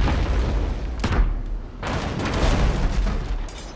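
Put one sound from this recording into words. Cannons fire with heavy booms.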